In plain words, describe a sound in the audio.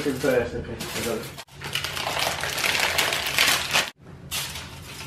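Aluminium foil crinkles and rustles close by.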